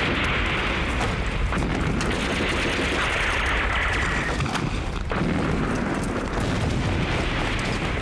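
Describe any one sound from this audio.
Open flames crackle and roar.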